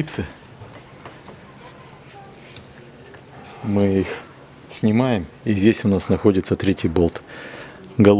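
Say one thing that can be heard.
A rubber door seal creaks and rubs as hands pull it loose.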